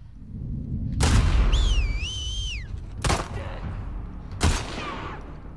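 A rifle fires loud, sharp shots close by.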